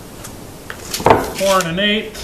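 A wooden board knocks down onto wood.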